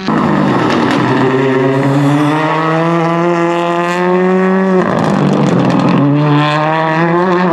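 A rally car engine roars loudly at high revs, with gear shifts.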